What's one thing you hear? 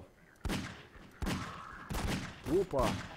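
A pistol fires several loud shots.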